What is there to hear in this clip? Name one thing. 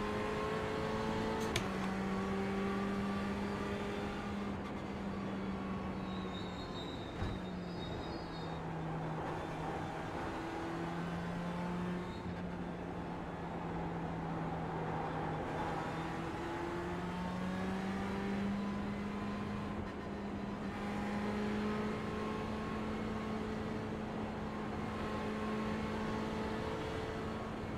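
A racing car engine drones steadily, rising and falling in pitch.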